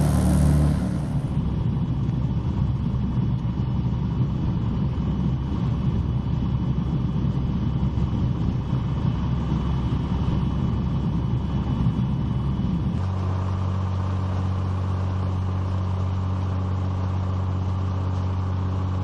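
A propeller plane's engine drones steadily, heard from inside the cabin.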